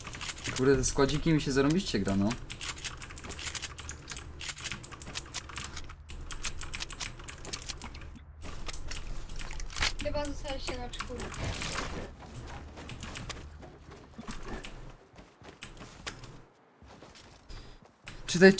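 Footsteps patter quickly on grass and wood.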